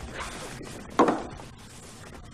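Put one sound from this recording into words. A wooden box is set down on a table with a knock.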